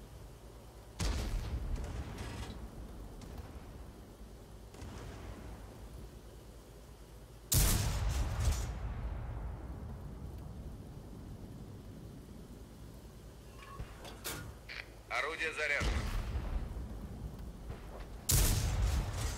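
A tank cannon fires with a heavy, booming blast.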